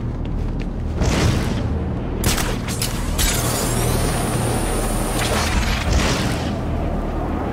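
Wind rushes loudly past during a glide through the air.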